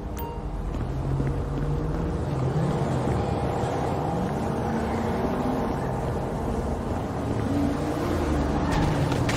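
A car engine revs up and down as the car speeds away.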